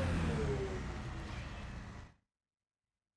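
A vehicle's engine hums as it drives over rough ground.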